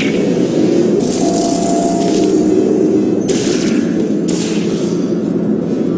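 A futuristic gun fires with short whooshing zaps.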